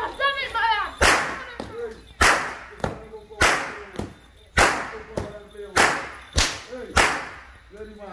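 A whip cracks sharply again and again.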